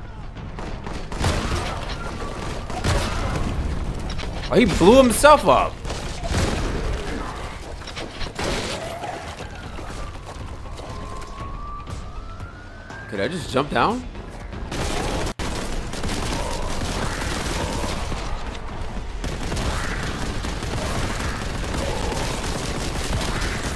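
Gunshots fire rapidly with heavy bursts.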